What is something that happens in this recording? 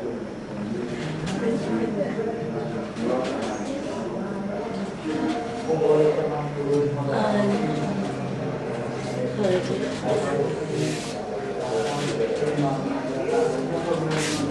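Women talk with animation close by.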